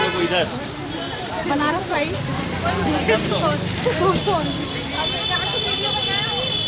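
A crowd of men and women chants and talks loudly outdoors.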